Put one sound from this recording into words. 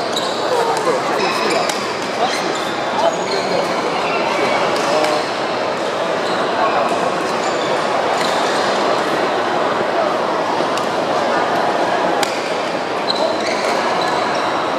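Shuttlecocks are struck with rackets, making sharp pops.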